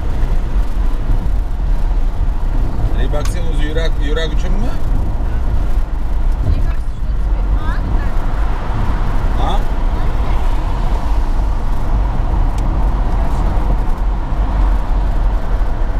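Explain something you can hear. A car's engine and tyres rumble steadily at highway speed.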